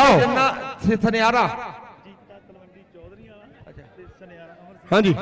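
A young man chants loudly and rapidly, close by.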